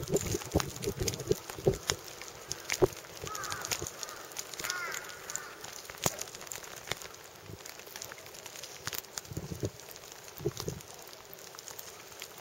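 A large animal's heavy paws thud softly on concrete as it walks.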